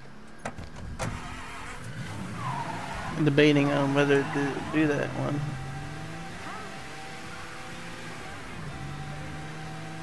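A car engine starts and revs loudly, then hums as the car drives off.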